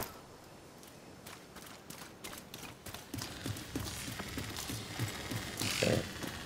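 Footsteps scuff over rough ground.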